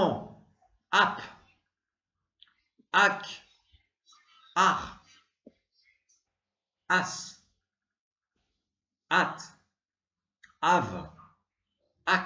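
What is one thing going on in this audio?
A young man pronounces short syllables one at a time into a close microphone, with pauses between them.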